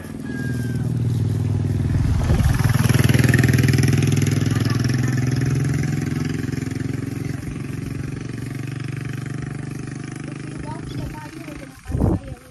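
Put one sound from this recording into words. A motorcycle with a sidecar passes close and fades into the distance.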